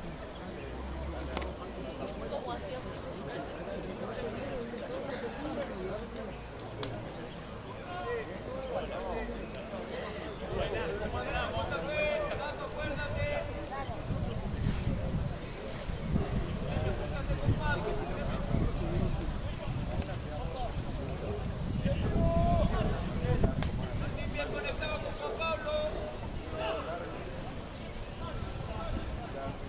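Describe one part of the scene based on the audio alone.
Young men shout and call to each other outdoors, some distance away.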